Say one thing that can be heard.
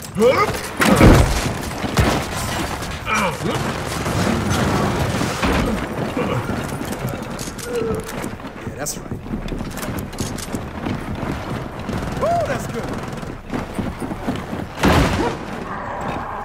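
Gunfire bursts out in short loud volleys.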